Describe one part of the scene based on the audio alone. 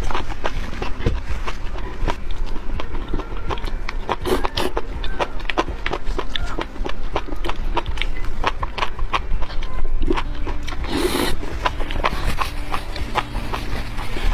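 A young woman chews wetly and smacks her lips close up.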